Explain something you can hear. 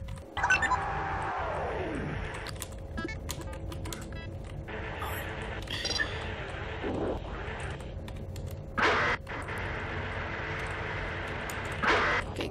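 Electronic interface tones beep and chirp.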